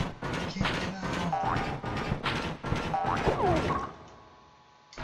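Blows thud rapidly against a creature.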